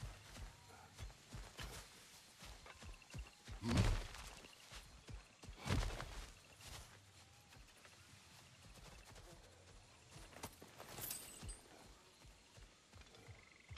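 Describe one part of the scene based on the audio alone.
Footsteps crunch through leaves and grass.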